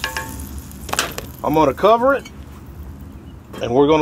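A lid clanks onto a pot.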